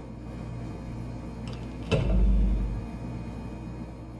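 A refrigerator door is pulled open.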